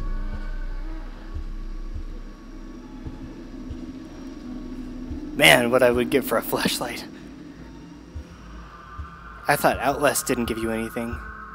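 Slow footsteps thud softly on a wooden floor.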